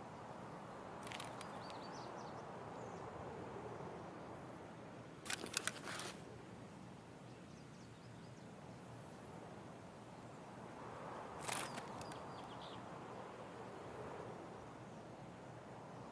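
Wind rustles steadily through leafy trees outdoors.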